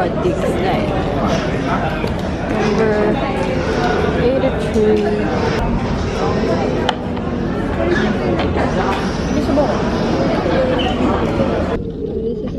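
Many people chatter all around in a busy, echoing room.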